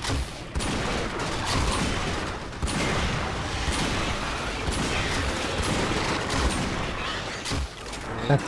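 Energy blasts whoosh and crackle in quick bursts.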